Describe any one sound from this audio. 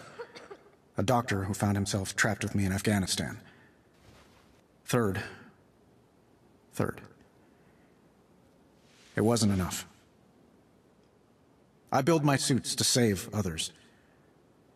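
A young man speaks slowly and dramatically into a nearby microphone, in short bursts with pauses.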